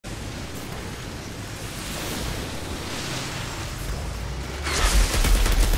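Wind howls steadily in a snowstorm, growing louder toward the end.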